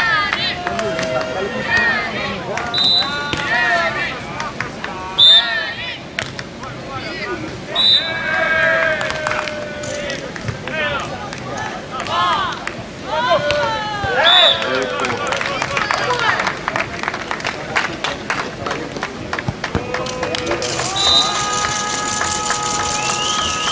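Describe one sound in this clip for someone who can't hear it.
A crowd shouts and cheers outdoors.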